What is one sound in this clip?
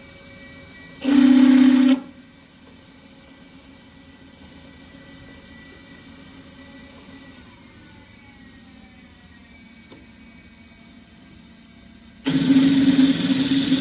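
A drill bit grinds loudly into steel in short bursts.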